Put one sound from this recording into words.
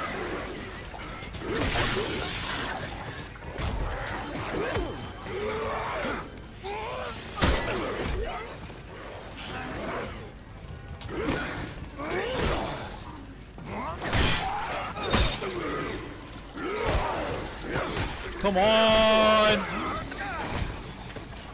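Monsters snarl and shriek up close.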